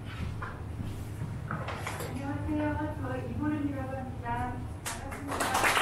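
A woman speaks into a microphone through a loudspeaker in a room with some echo.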